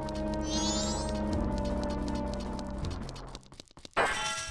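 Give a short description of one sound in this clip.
Game music plays with bright chiming notes.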